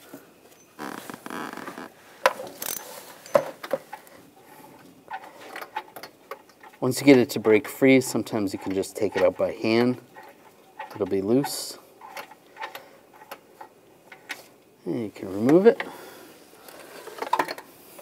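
Metal parts click and scrape.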